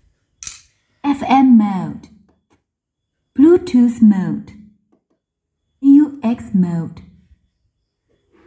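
A loudspeaker plays three short bursts of sound.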